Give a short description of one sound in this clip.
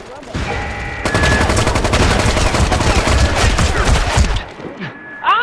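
A rifle fires rapid bursts of shots up close.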